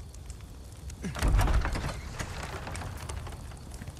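Heavy wooden double doors creak and swing open.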